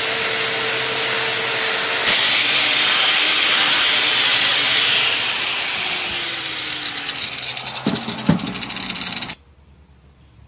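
An angle grinder with a wire cup brush scours a steel bar.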